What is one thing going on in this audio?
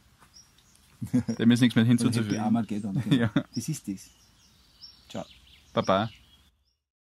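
A man speaks calmly with animation close by.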